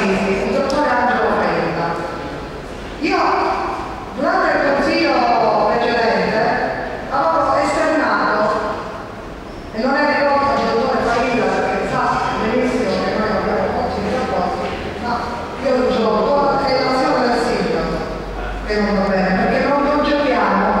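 A woman speaks with animation into a microphone in a room with some echo.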